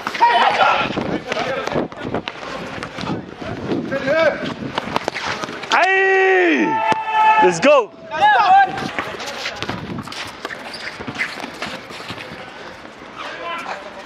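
A basketball bounces on a concrete court outdoors.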